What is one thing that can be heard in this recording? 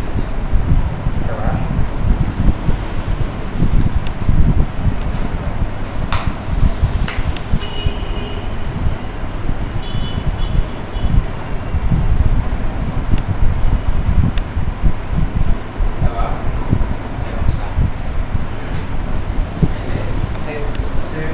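A man speaks in a calm, explaining tone close by.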